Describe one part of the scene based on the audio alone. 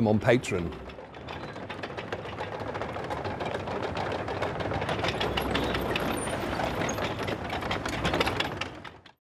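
A tank engine rumbles as its tracks clatter.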